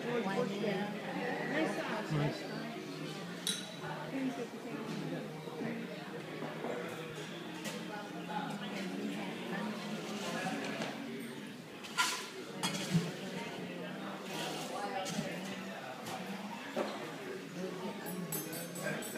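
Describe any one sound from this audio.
Guests chatter at tables.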